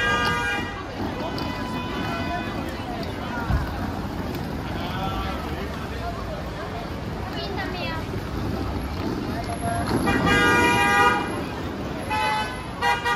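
A busy street crowd chatters all around, outdoors.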